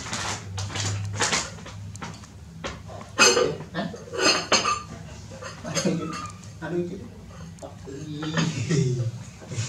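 A ceramic lid clinks against a pot.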